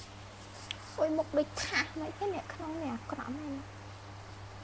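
A young woman talks animatedly and laughs close by.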